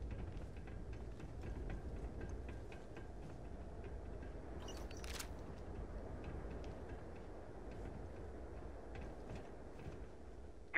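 Heavy boots clank steadily on a metal walkway.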